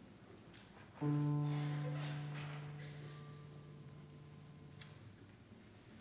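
A piano plays a single chord that rings out and fades.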